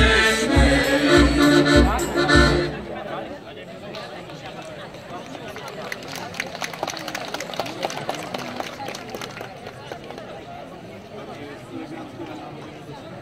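A crowd of adults murmurs and chatters nearby outdoors.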